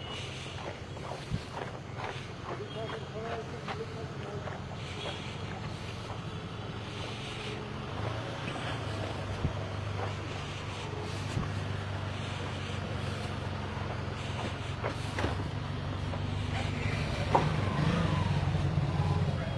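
Footsteps crunch on a gravel road.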